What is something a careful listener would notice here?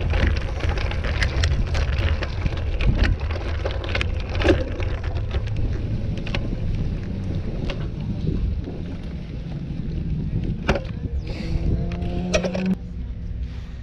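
Bicycle tyres roll and crunch over gravel.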